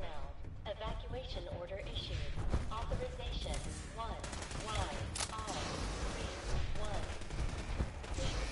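Heavy armoured footsteps thud on a metal floor.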